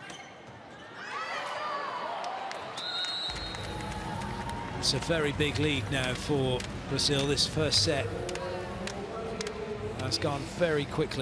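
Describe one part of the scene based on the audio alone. A large crowd cheers and shouts in a big echoing hall.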